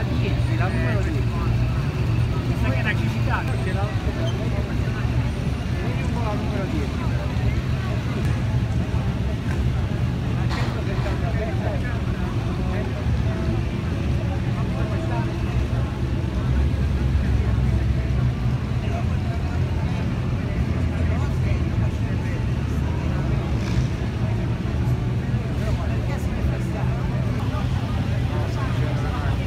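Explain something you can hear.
A crowd chatters nearby outdoors.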